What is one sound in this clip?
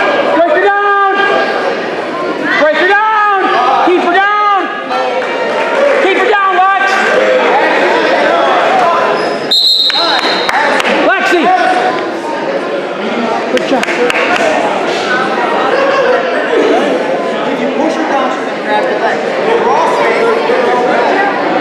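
A crowd of adults and children murmurs and chatters in the background.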